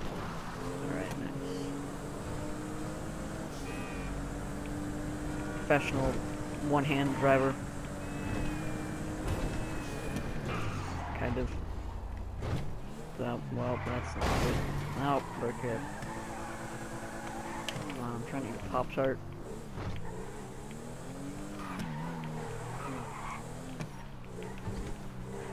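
A car engine hums and revs as it drives along.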